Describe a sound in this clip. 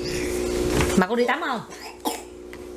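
A toddler giggles.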